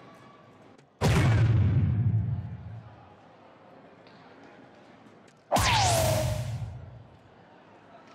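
An electronic dartboard plays a loud, whooshing sound effect that slowly fades.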